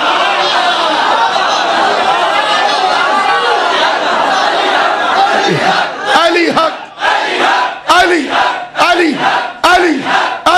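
A large crowd of men chants loudly together in rhythmic bursts.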